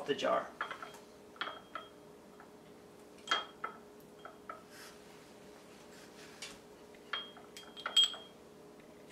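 Glass jars clink and tap against a hard countertop.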